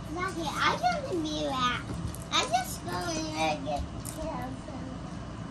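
A young girl talks and squeals excitedly close by.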